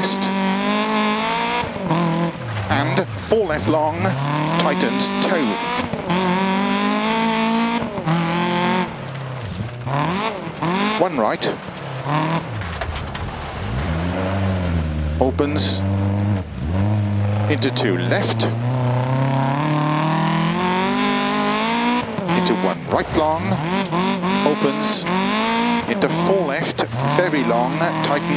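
A rally car engine revs hard and shifts up and down through the gears.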